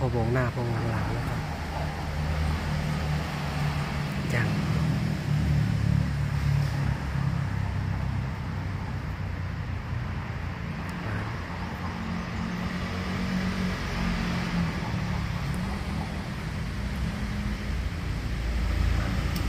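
Leaves rustle in the wind outdoors.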